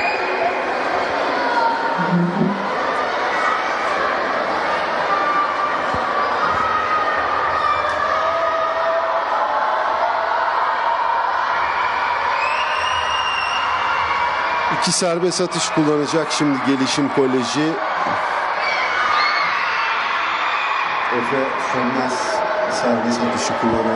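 Young players and spectators chatter and call out in a large echoing hall.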